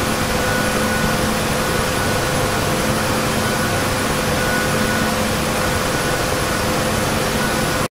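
A helicopter engine whines and its rotor thrums steadily.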